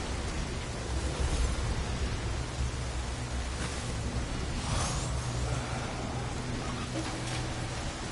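Water splashes as someone wades through a pool.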